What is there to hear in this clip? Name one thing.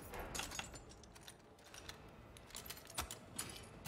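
A heavy metal lock clanks as a bolt slides open.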